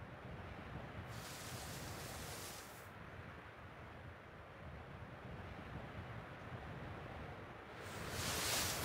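Tall dry grass rustles as someone creeps through it.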